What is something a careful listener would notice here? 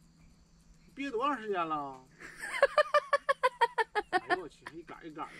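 A man laughs loudly nearby.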